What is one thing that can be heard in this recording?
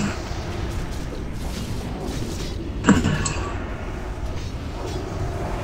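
Magic spells whoosh and burst in a fight.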